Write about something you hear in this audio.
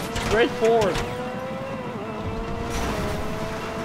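A car smashes through a wire fence.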